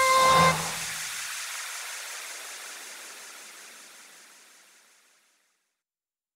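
Upbeat music plays from a loudspeaker, then stops abruptly and rings out as it fades.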